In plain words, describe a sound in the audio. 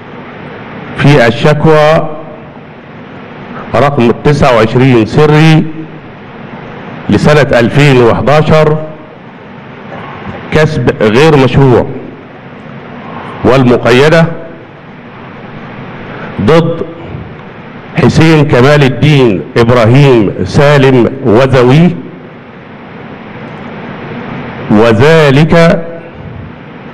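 A man speaks loudly and with emphasis into a microphone, heard through loudspeakers in a large room, pausing between phrases.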